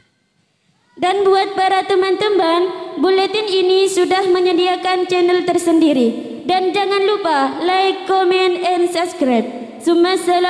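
A group of young girls sing together loudly through a loudspeaker.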